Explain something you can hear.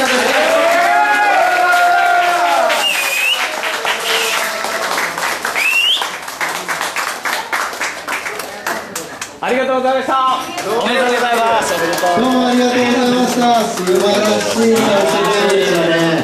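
A crowd of young men and women cheers and sings loudly in a lively, echoing room.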